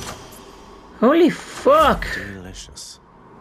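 A game menu chime rings out in two bright swooping tones.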